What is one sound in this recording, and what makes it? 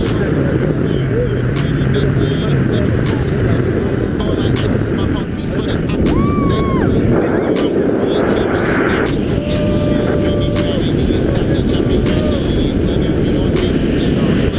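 Strong wind rushes and buffets loudly throughout.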